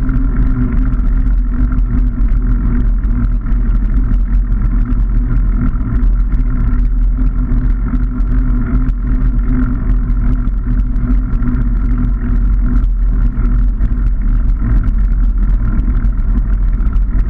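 Bicycle tyres roll steadily on a paved path.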